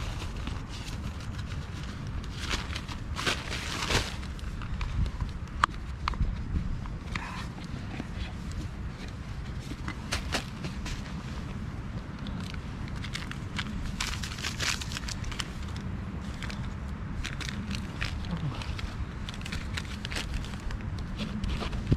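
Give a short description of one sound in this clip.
Dry leaves rustle and crunch as a person shifts while kneeling.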